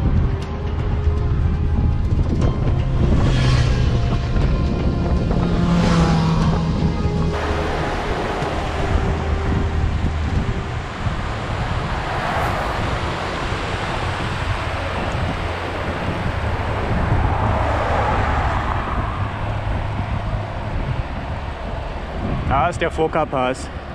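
Wind buffets the microphone steadily.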